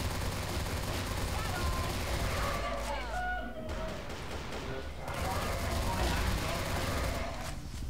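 Pistols fire rapid shots.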